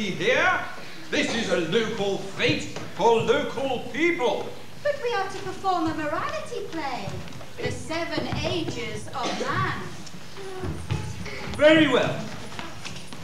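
A man speaks with animation from a stage in a large echoing hall.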